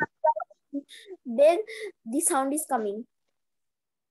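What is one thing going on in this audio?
A child speaks briefly through an online call.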